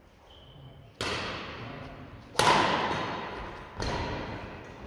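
Shuttlecocks are struck with rackets, the hits echoing sharply in a large hall.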